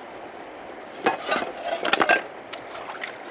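Metal pots and bowls clank together in water.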